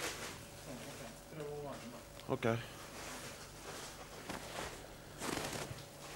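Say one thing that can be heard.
A heavy quilt rustles as a man spreads it out.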